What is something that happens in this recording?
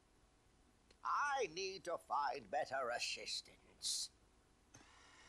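An elderly man speaks grumpily in a cartoonish voice.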